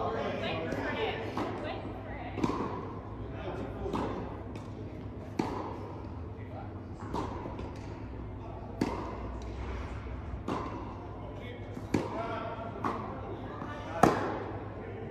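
Tennis balls are struck with rackets, each hit ringing out in a large echoing hall.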